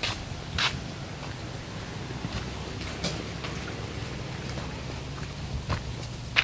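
Bare feet shuffle on dry dirt.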